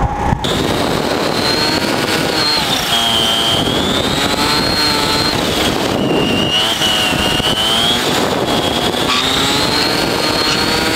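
A go-kart engine whines loudly close by, rising and falling in pitch as it speeds up and slows down.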